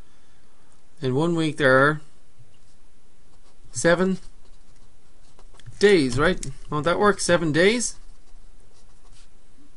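A marker squeaks and scratches on paper.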